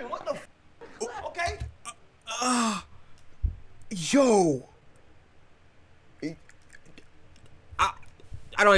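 A young man speaks with animation.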